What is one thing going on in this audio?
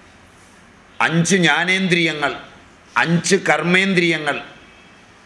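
An elderly man speaks calmly into a microphone in short phrases.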